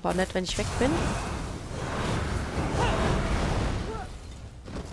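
Magic bolts crackle and whoosh.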